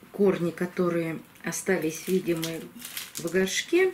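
Small pebbles rattle as they are spooned into a plastic pot.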